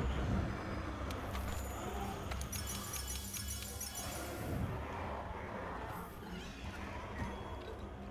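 Menu selections click and chime.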